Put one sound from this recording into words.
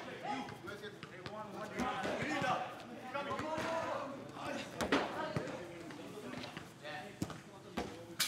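A football is headed with a dull thud.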